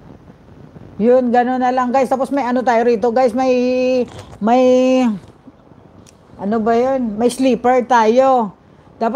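A woman sings loudly and with feeling, close to a microphone.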